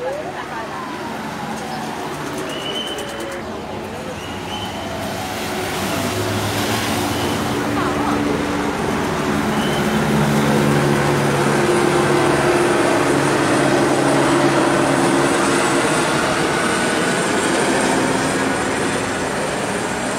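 Cars and vans drive past close by on a road, their engines rumbling.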